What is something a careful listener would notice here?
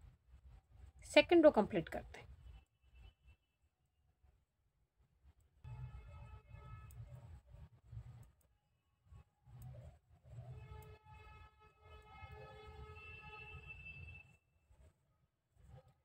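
Metal needles tick softly against each other as yarn is worked.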